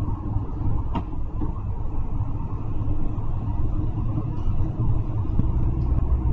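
Tyres roar on the road inside an echoing tunnel.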